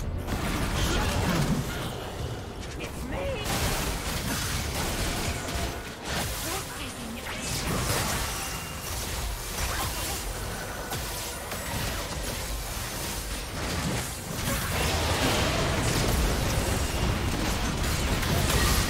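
Spell blasts and impacts crackle and boom in a video game battle.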